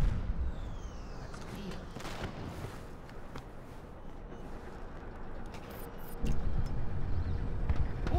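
A game character's footsteps shuffle softly.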